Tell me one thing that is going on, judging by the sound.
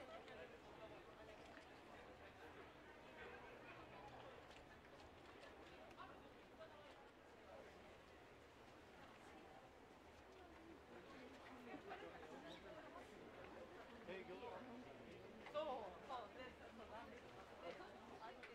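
A crowd of people chatters and murmurs outdoors.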